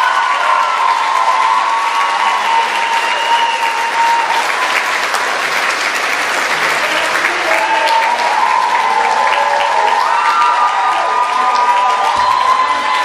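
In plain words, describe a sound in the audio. A crowd of young people cheers and whoops.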